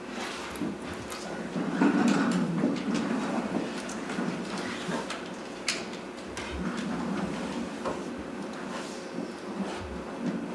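A middle-aged man speaks calmly into a microphone in a room with some echo.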